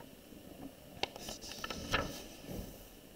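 A paper page turns with a soft rustle.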